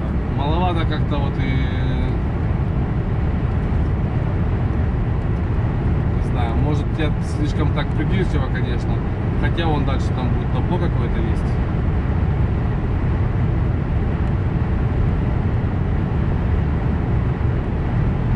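A car's engine and tyres hum steadily on a motorway road.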